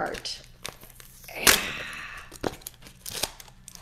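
Paper crinkles and rustles in hands.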